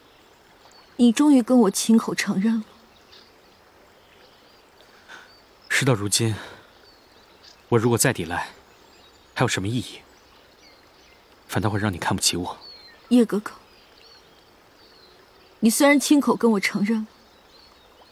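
A young woman speaks tearfully and softly.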